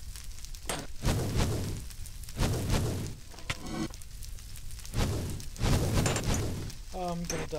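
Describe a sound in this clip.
Fire crackles and roars in bursts.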